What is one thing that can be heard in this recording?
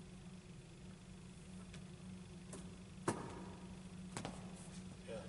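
A basketball thumps against a wall.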